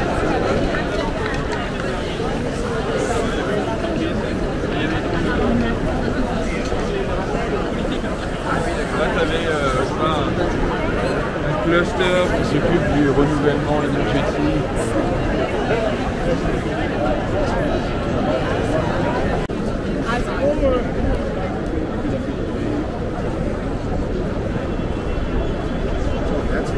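A crowd chatters on all sides outdoors.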